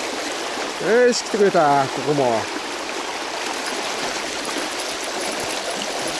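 A shallow river rushes and gurgles over stones.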